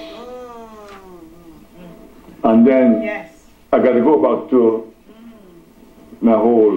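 A man preaches loudly and with fervour into a microphone, in a room with some echo.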